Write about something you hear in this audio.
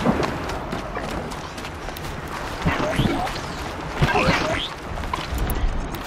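Footsteps rustle quickly through tall grass.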